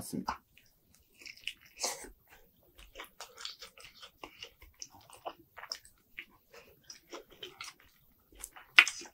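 A young man bites and chews crunchy fried chicken close to a microphone.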